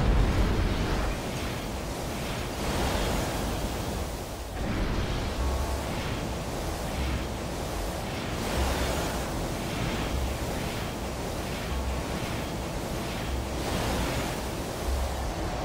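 Jet thrusters roar in bursts.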